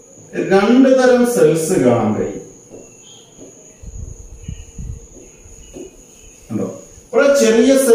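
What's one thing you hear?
A man speaks clearly into a close microphone, explaining.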